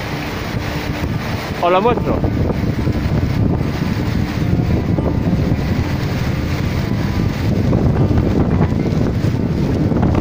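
Strong wind buffets loudly outdoors.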